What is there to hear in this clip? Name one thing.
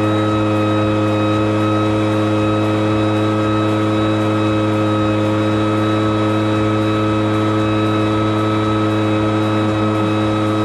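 A leaf blower engine drones loudly and steadily close by.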